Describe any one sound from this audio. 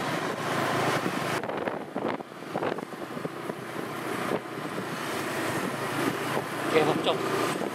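Inline skate wheels roll and rumble on asphalt.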